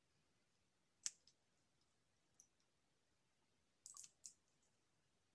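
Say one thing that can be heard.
A small plastic vial clicks softly in a woman's hands.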